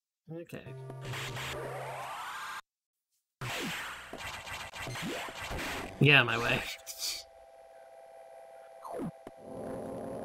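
Video game sound effects chirp, whoosh and buzz.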